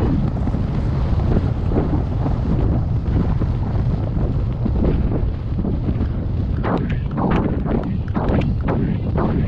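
Wind rumbles and buffets across a microphone outdoors.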